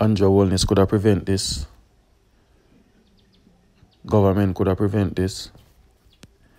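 A middle-aged man speaks calmly and firmly into a microphone, with pauses.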